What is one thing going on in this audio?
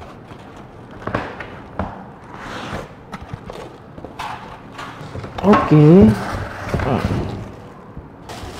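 Cardboard box flaps scrape and thump as they are opened.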